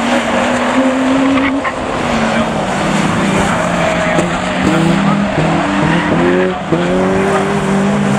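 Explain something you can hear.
Car engines rev loudly and change gear as cars race past.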